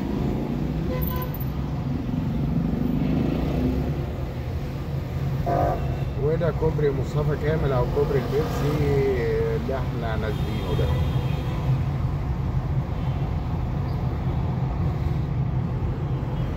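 A car engine hums with a low, steady rumble while driving through city traffic.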